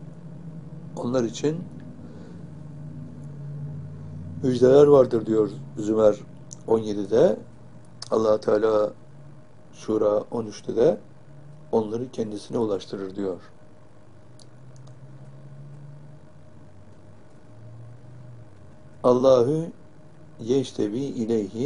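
An elderly man speaks calmly and slowly into a nearby microphone, with long pauses.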